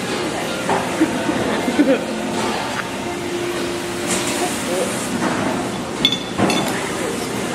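Chopsticks clink against plates and bowls.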